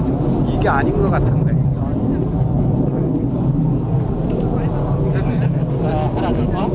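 Men and women talk quietly nearby, outdoors.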